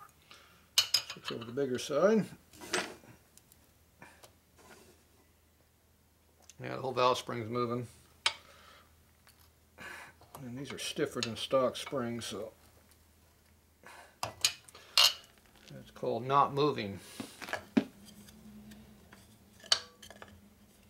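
A wooden mallet taps sharply on metal.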